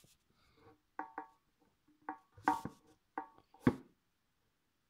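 A game makes short blocky tapping sounds as blocks are placed.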